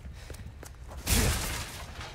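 A wooden crate smashes apart with a loud crack.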